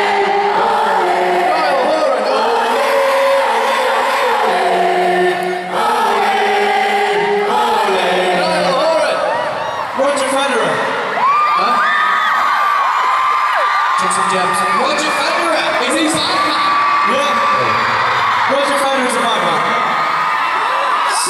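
A large crowd screams and cheers.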